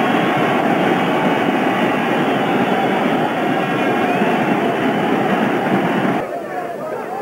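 A large crowd cheers and roars loudly outdoors.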